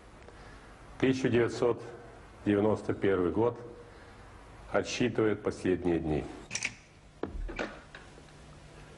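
An elderly man speaks slowly and formally into a microphone.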